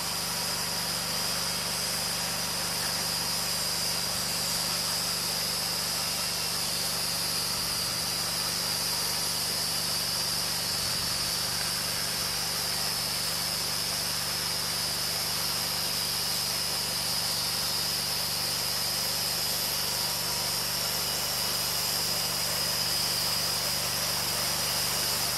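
A gasoline engine runs steadily close by.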